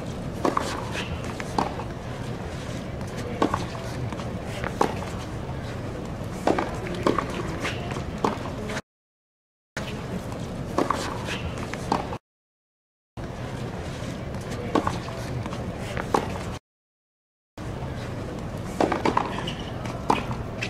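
A tennis racket strikes a ball with sharp pops, again and again.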